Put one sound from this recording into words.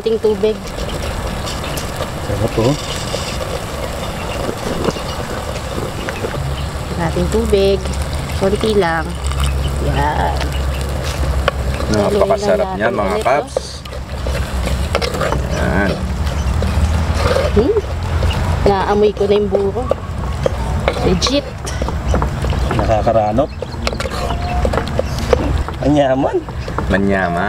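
Food bubbles and simmers in a pot.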